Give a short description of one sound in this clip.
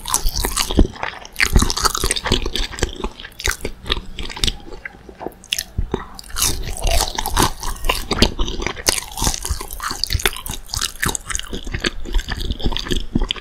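A young woman chews crunchy food noisily, close to a microphone.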